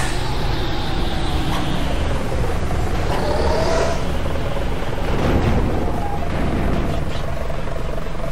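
A bus engine rumbles steadily as it drives downhill.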